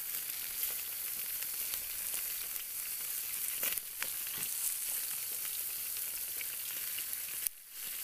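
A knife and fork scrape and tap against food on a grill.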